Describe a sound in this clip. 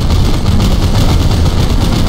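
A fireball explodes with a blast.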